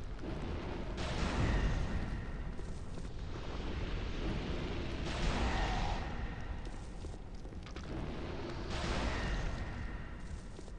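A magic spell bursts with a bright whoosh.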